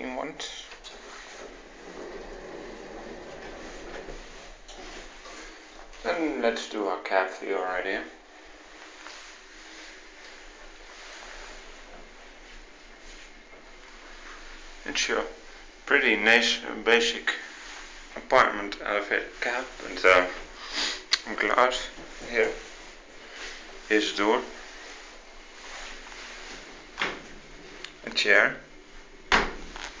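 An elevator hums softly as it moves.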